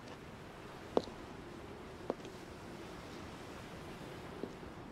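Footsteps crunch slowly on rocky ground.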